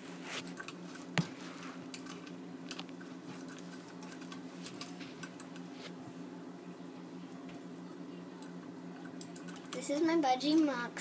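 A budgie's claws scratch and tap on a cage.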